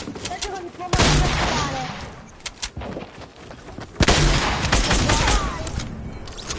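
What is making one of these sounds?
Gunshots crack loudly and echo away.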